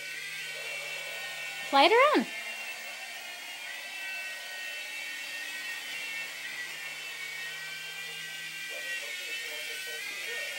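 A toy helicopter's small rotor whirs and hums steadily nearby.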